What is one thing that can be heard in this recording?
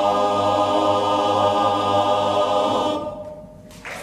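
A large male choir sings a sustained chord in an echoing hall.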